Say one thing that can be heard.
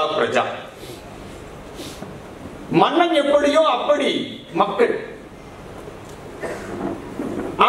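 A man speaks with emphasis into a microphone, heard through loudspeakers.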